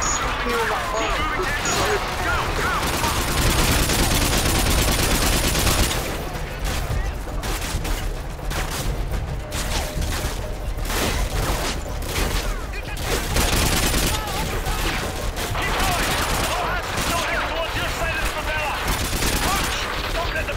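A man speaks through a radio in a video game.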